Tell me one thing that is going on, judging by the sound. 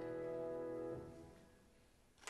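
A piano chord rings and fades away.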